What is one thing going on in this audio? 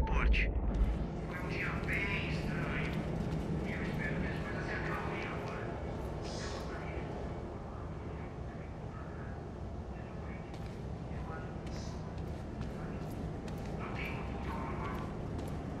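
Footsteps walk steadily on a hard floor.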